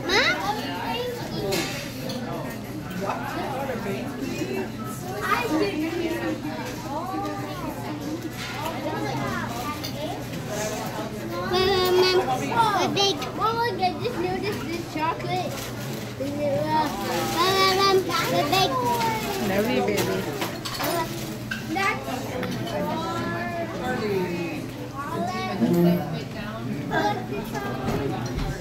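Wrapping paper rustles and tears as a boy unwraps a present.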